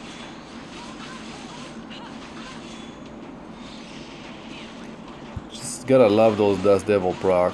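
Blades swoosh and magic blasts burst during a fight.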